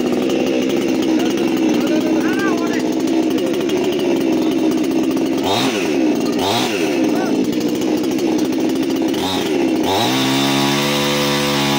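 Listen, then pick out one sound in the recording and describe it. A chainsaw engine runs loudly close by, revving up and down.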